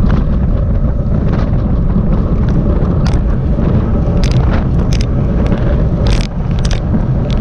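Wind rushes and buffets loudly, outdoors on a fast ride.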